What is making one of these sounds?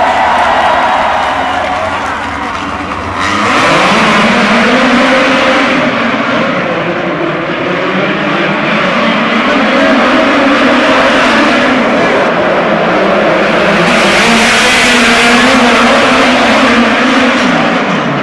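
Racing car engines roar loudly and rev up and down as they speed past.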